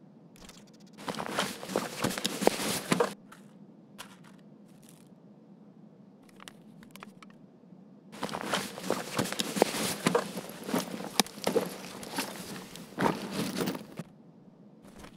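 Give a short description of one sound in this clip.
Gear and items rustle and clatter as they are moved around.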